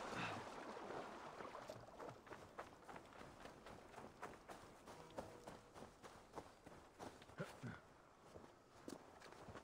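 Footsteps crunch quickly over stones and grass.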